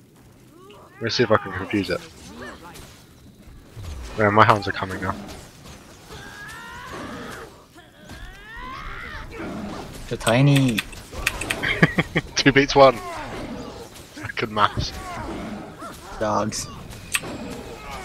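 Magic blasts burst and crackle in a fight.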